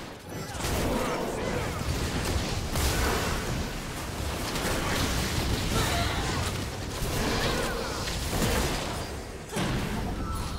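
Weapon hits clash and thud repeatedly.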